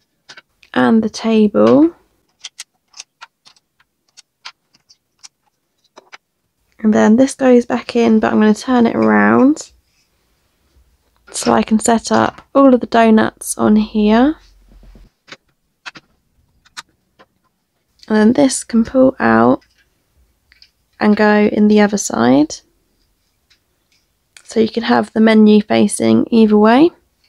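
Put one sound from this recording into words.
Small plastic toy pieces click softly as they are handled.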